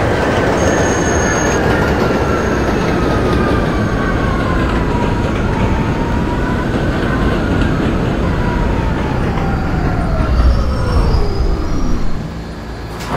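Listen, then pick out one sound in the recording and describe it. A train's electric motor whines loudly, falling in pitch as the train slows to a stop.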